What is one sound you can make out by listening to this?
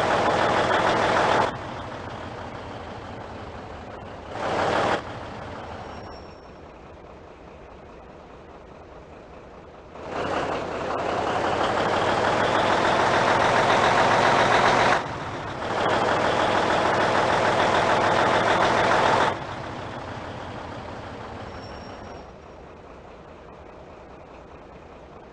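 A truck engine drones steadily, rising in pitch as it speeds up.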